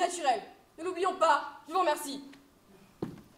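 A young woman declaims on a stage in a large hall.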